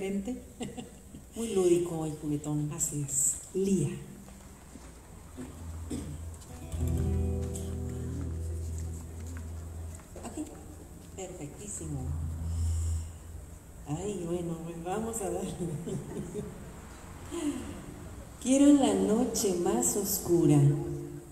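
An acoustic guitar plays through loudspeakers.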